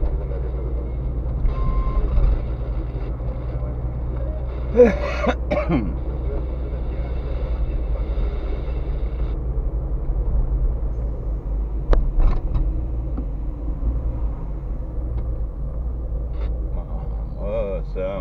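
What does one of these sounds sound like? A car engine hums steadily from inside the cabin as the car drives along.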